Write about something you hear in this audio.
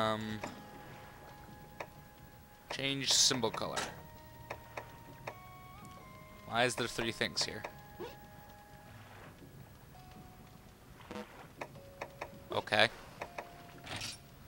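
Short soft electronic beeps chime as menu choices change.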